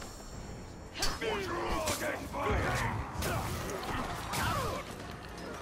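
Blades clash and thud in a close fight.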